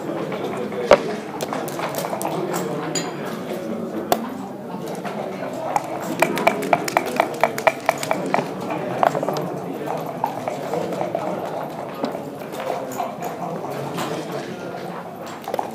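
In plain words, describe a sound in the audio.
Wooden checkers click against a board as they are moved.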